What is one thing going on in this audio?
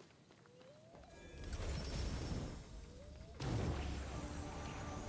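Magical energy whooshes and crackles.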